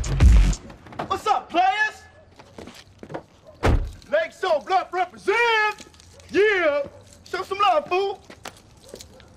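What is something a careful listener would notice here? A man calls out loudly.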